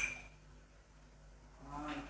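A spoon stirs food in a pot.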